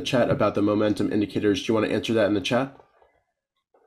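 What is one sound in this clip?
A young man speaks calmly and briskly into a close microphone.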